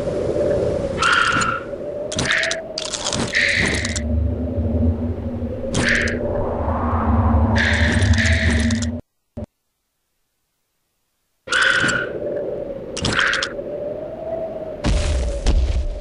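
Weapons strike in short, sharp bursts of combat.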